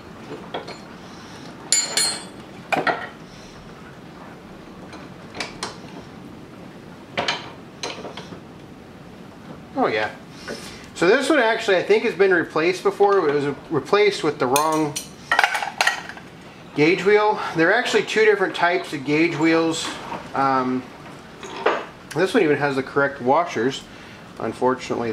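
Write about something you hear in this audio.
A metal wrench clinks against a steel vise.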